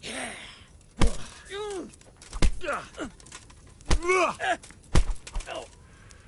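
Heavy blows thud hard, again and again.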